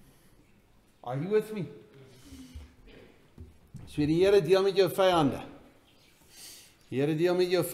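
A middle-aged man speaks with animation in a room with a slight echo.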